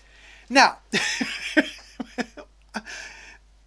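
A young man laughs close to a microphone.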